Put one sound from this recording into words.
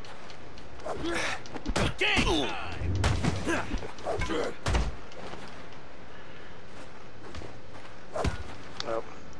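Fists thud hard in a quick brawl.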